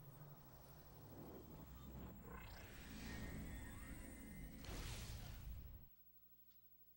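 Loud game intro music and sound effects swell and whoosh, then cut off abruptly.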